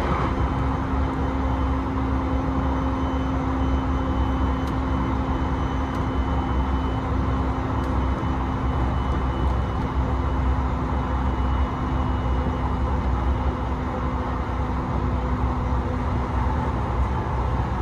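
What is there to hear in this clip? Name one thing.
A low steady hum drones inside the train carriage.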